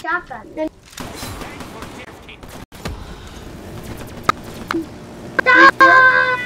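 Gunshots from a video game crack in quick bursts.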